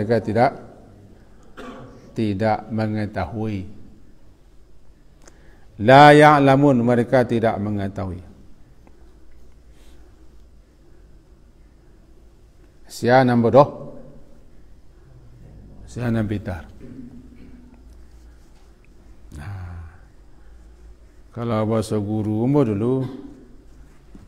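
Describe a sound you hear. A middle-aged man speaks calmly into a microphone, in bursts with pauses.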